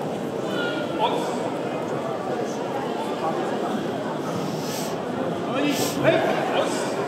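A man calls out commands loudly.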